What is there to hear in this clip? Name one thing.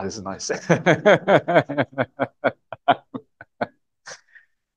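A middle-aged man laughs heartily into a microphone.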